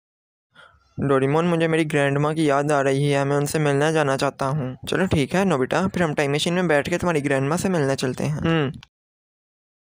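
A cartoon boy speaks in an animated, high-pitched voice.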